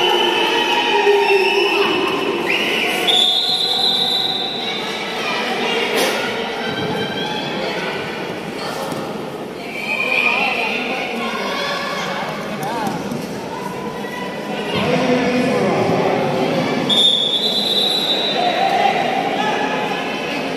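Running feet patter and squeak on a hard floor.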